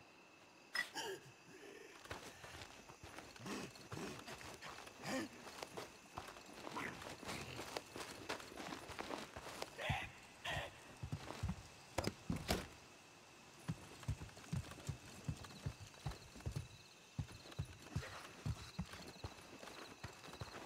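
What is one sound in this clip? Footsteps crunch steadily on dirt and gravel.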